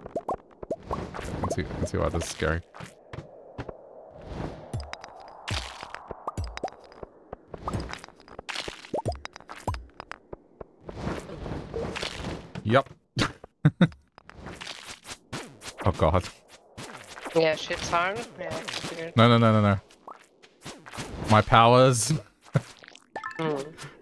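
Short sharp game sound effects of blows and swishes ring out again and again.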